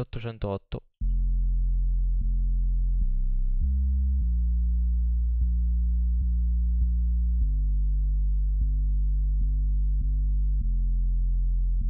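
A deep synthesized bass plays a slow melody of long, steady notes.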